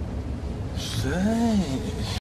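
A man groans in distress close by.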